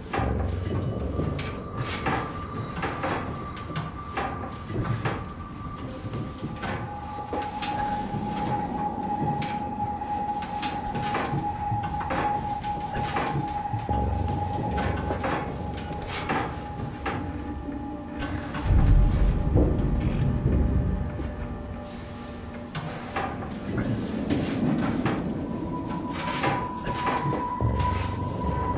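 Footsteps clank on a metal grating floor at a steady walking pace.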